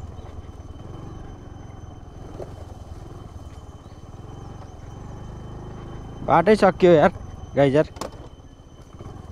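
A motorbike engine hums steadily at low speed.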